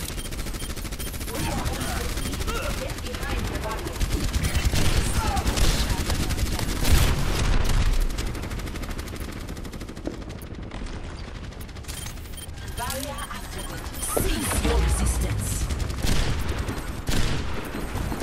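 A futuristic energy weapon fires in rapid bursts.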